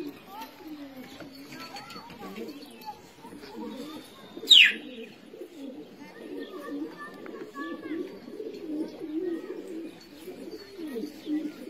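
A flock of pigeons flaps its wings overhead.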